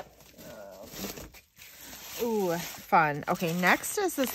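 Plastic bubble wrap crinkles and rustles close by.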